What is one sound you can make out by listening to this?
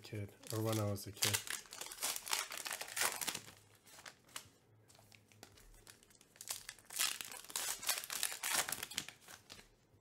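Foil card packs crinkle and tear open.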